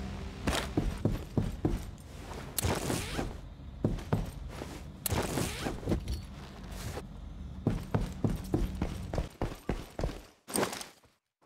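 Footsteps thud on a hard floor indoors.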